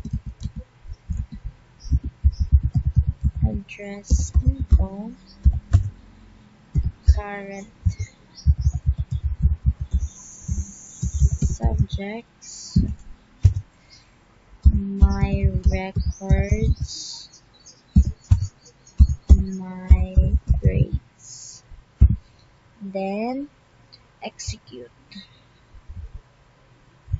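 Keys clatter quickly on a keyboard in bursts.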